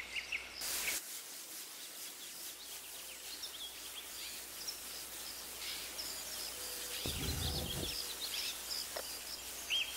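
Water hisses and sprays from a broken pipe.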